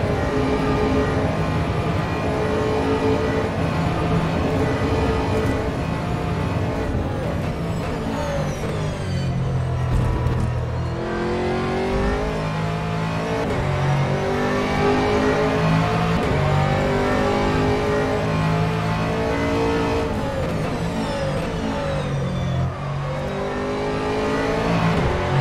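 A racing car engine roars loudly, revving up and down through the gears.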